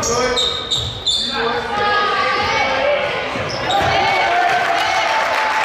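Young men shout and call out across a large echoing gym.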